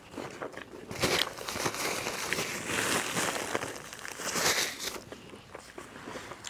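Paper wrappers crinkle and rustle close by.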